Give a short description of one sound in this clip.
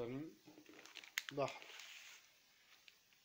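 Paper rustles as a book is handled.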